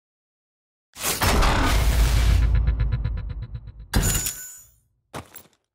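A loud, booming game fanfare plays with ringing chimes.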